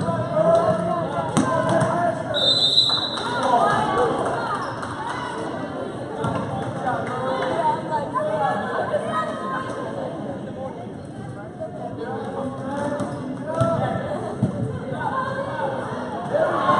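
A crowd of adults and children chatters in a large echoing hall.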